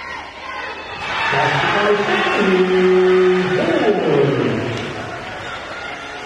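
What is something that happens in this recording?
A crowd cheers loudly and then dies down.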